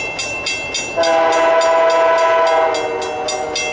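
A train horn blows loudly in the distance.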